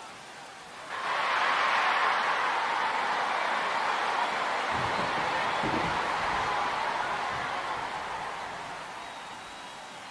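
A stadium crowd roars with cheers, then slowly fades.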